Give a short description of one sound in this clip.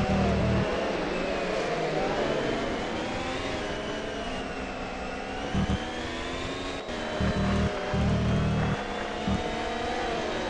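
A racing car engine whines loudly, its pitch rising and falling as it shifts gears.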